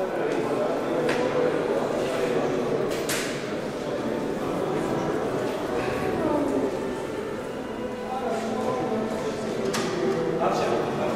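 A crowd of men talks at once in a hard-walled echoing space.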